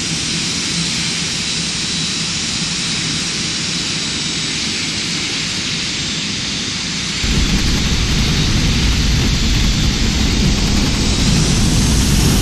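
Jet engines roar steadily overhead.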